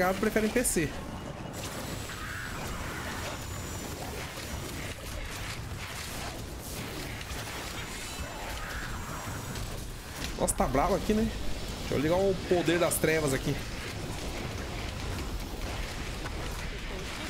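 Spells and blasts crackle and boom in a game.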